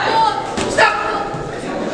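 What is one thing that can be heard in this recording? A boxing glove lands a punch with a sharp thud.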